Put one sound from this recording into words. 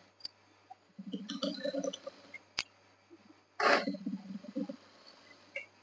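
A sewing machine whirs as it stitches fabric.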